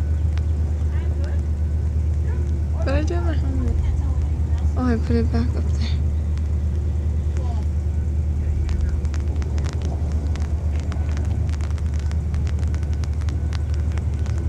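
A car engine drones in the distance.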